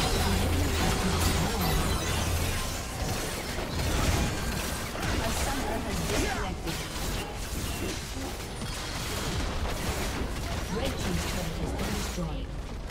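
Video game spells and attacks crackle and boom in quick bursts.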